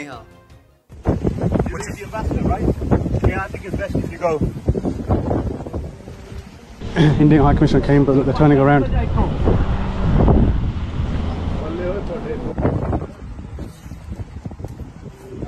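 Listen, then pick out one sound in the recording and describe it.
Men talk loudly with one another outdoors.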